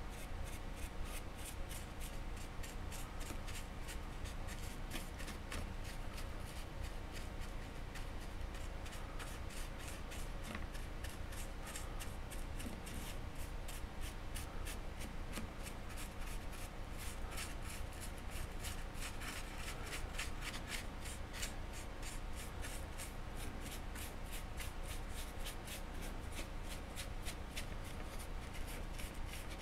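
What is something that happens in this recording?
A paintbrush dabs and scrapes softly against a metal surface, close by.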